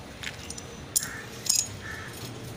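Metal tools clank sharply against each other.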